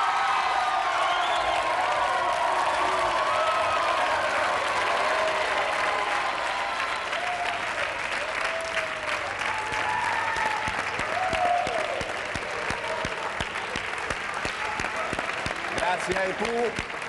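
A large audience cheers and claps loudly.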